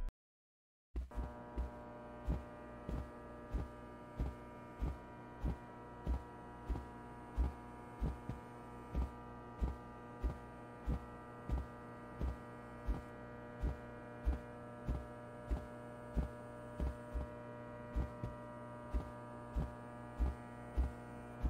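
Footsteps thud at an even walking pace on a soft floor.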